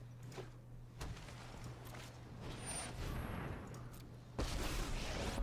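A magical whoosh and shimmer sound from a game plays.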